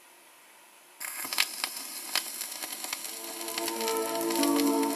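An old record plays music, faint and scratchy.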